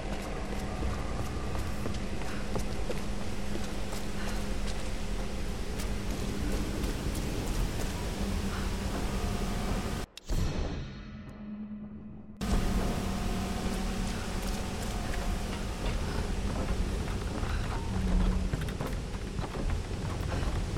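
Footsteps crunch on gravel and creak on wooden boards.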